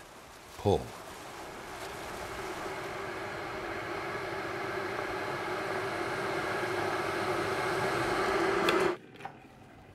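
A kettle rumbles and hisses as water heats to a boil.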